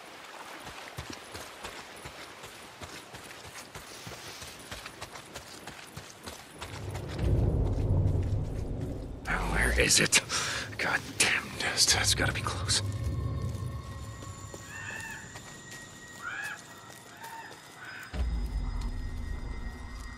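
Footsteps crunch and rustle through dry grass and brush.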